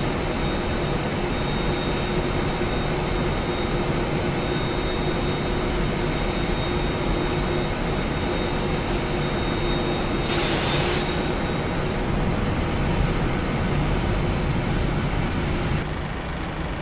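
A jet engine whines and roars steadily close by.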